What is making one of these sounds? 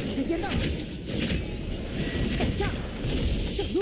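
A fiery explosion booms.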